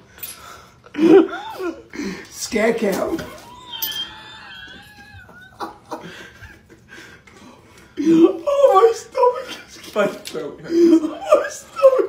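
A man laughs loudly close by.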